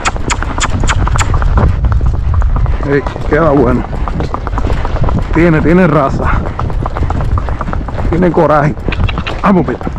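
Horse hooves clop steadily on a paved road.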